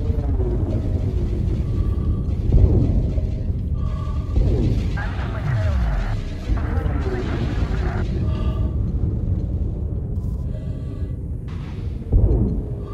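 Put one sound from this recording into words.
Explosions rumble deeply nearby.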